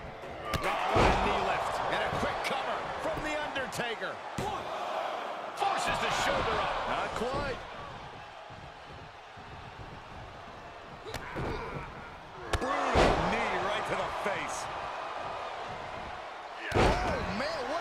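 Heavy thuds sound as a wrestler slams onto the mat.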